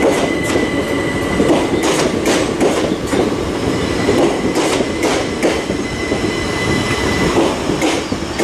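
A passenger train hums with a steady whine as it rolls past.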